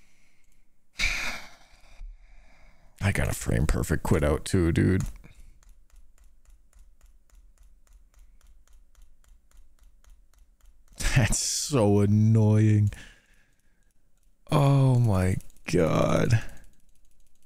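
A young man speaks into a close microphone in short bursts.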